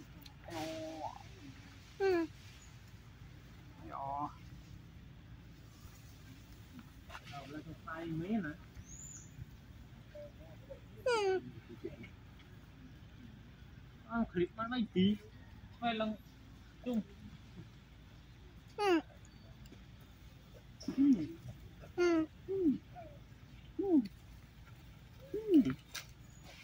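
A monkey chews and smacks on soft fruit close by.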